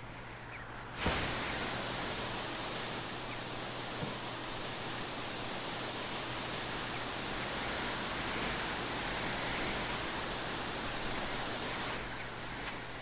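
Water rushes steadily down a waterfall.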